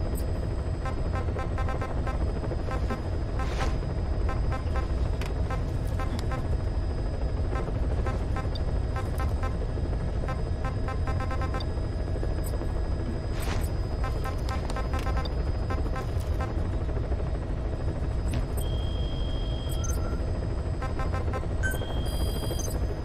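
Electronic menu beeps tick rapidly as selections scroll.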